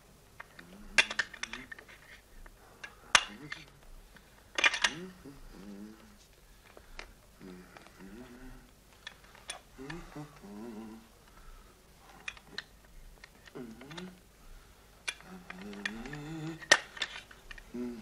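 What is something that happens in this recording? Metal parts of a machine click and clack as they are handled.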